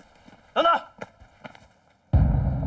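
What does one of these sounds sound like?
Footsteps run on a paved path.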